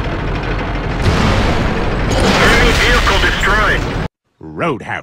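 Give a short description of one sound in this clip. Cannon shots and explosions boom loudly.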